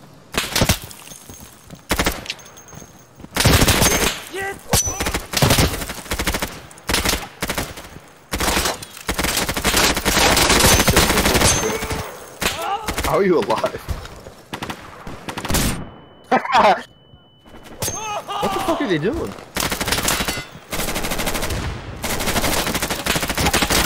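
Gunshots crack loudly in rapid bursts.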